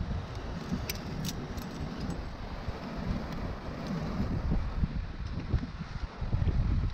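Wind gusts roughly against a microphone outdoors.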